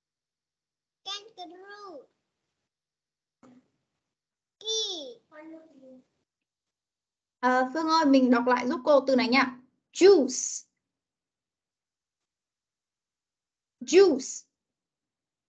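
Young children answer and repeat words over an online call.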